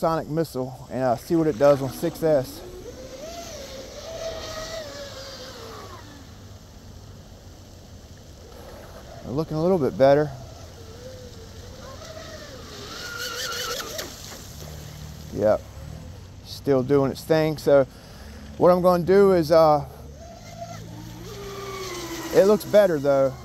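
A small motorboat engine whines steadily, rising and falling in pitch.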